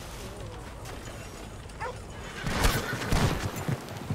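Horses' hooves clop on the ground.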